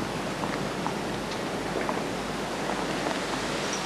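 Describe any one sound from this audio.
A tennis ball bounces on a hard court several times.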